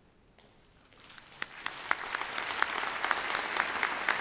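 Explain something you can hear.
A large audience applauds in a big echoing hall, the clapping swelling louder.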